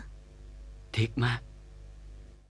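A man speaks softly up close.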